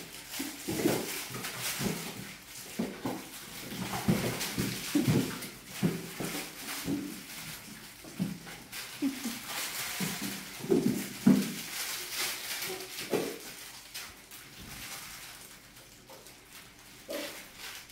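Several puppies yip and whine close by.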